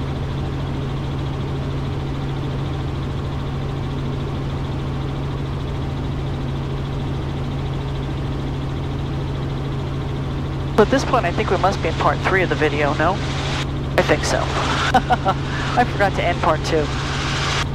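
A helicopter engine and rotor drone steadily throughout.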